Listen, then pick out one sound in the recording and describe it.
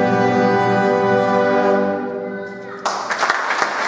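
A wind band plays a loud sustained chord that rings out in an echoing hall.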